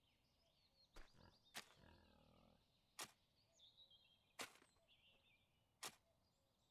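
A hoe strikes the ground with sharp, regular thuds.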